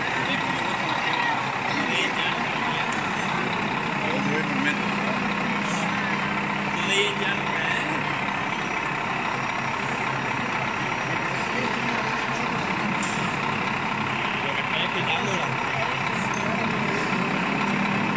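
A radio-controlled wheel loader's electric motor whines as it drives.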